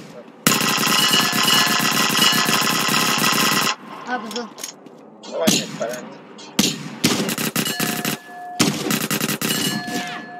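Guns fire in rapid, rattling bursts.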